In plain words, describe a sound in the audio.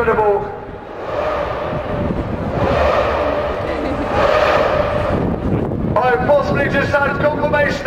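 A crowd murmurs and chatters outdoors along a street.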